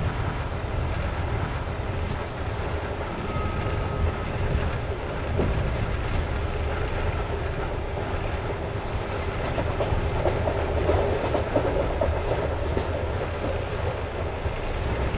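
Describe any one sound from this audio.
A train rumbles steadily along the rails at speed.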